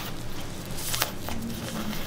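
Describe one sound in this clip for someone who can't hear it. A cotton pad wipes a wet cat's face.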